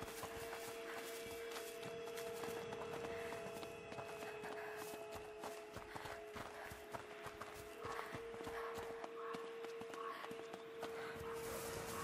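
Footsteps run quickly over dirt and stone.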